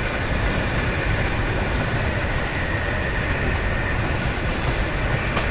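Train wheels roll and clatter over rails.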